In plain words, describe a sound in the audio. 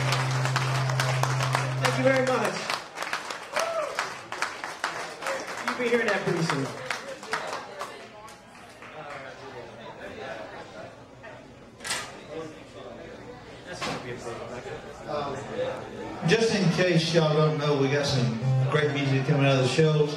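An acoustic guitar is strummed through a loudspeaker.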